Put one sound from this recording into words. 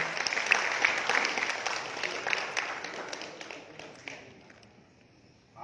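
A crowd applauds and cheers in a large hall, then fades.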